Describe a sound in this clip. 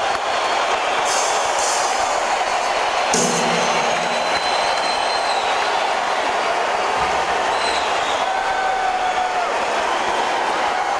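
An electric guitar plays loud, distorted chords.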